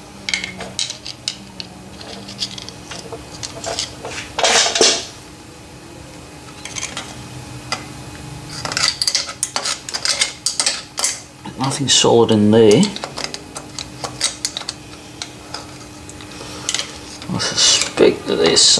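Metal parts click and clatter.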